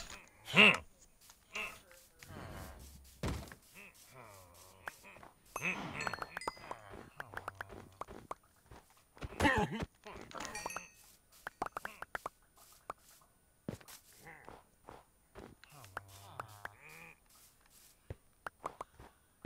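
Footsteps crunch over snow and grass.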